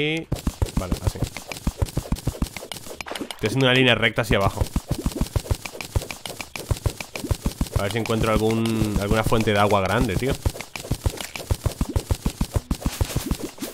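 A pickaxe chips at rock in rapid, regular taps.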